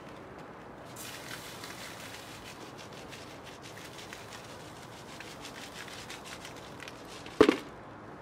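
Sand pours and hisses onto burning plastic.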